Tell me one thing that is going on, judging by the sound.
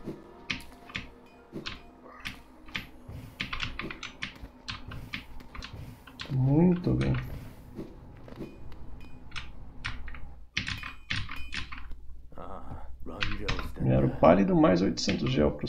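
Short game sound effects click and chime.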